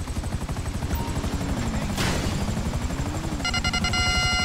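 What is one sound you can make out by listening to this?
A quad bike's engine revs up and down.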